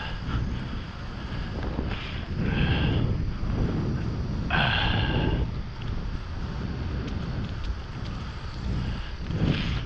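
Tyres hum on smooth asphalt.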